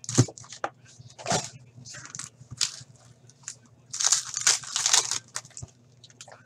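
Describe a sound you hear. Foil wrappers crinkle and tear as packs are opened.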